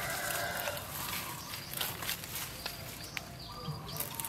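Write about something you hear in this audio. Leaves rustle as plants are pushed aside.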